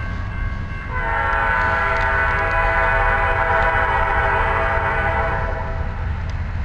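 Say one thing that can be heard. A train horn blares from a distance.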